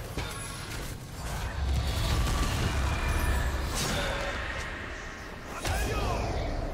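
Game sound effects of spells and hits play in bursts.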